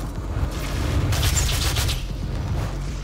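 A heavy gun fires a rapid burst.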